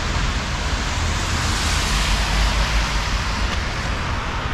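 A car drives past on a wet street.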